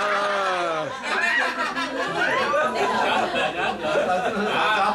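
Middle-aged men and women talk and laugh together nearby.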